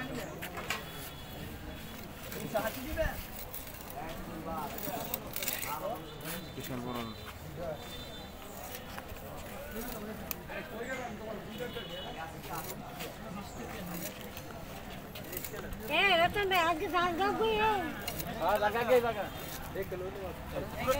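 Fish flesh and bone are sliced on an upright blade.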